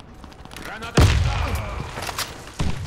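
A rifle is reloaded with metallic clicks and clacks.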